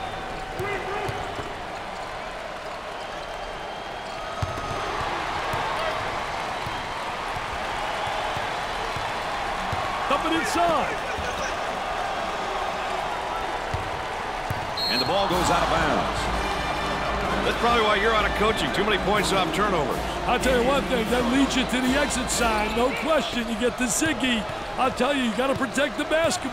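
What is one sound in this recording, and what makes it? A large crowd cheers and roars in an echoing arena.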